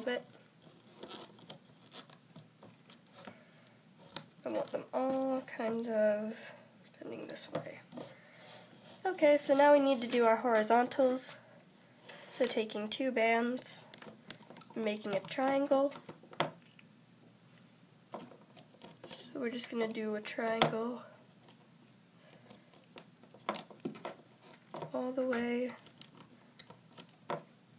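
Small plastic pegs click softly as rubber bands are hooked and pulled on a loom.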